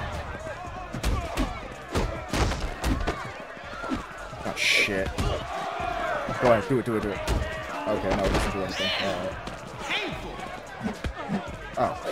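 Punches thud in a fist fight.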